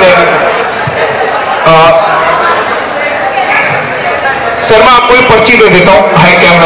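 A young man sings loudly into a microphone through loudspeakers.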